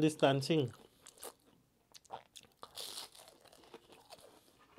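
A young man chews crunchy food with soft, wet mouth sounds.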